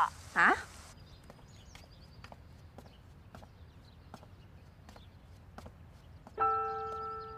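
Footsteps tap on pavement at a steady pace.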